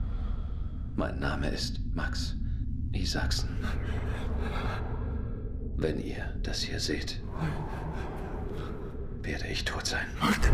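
A man speaks calmly and quietly, close by.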